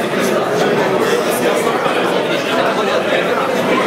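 A man talks up close.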